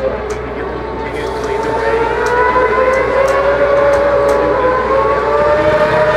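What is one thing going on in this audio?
Motorcycle engines roar past at high speed, rising in pitch.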